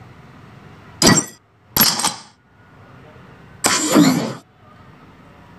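Short electronic game sound effects whoosh and clang.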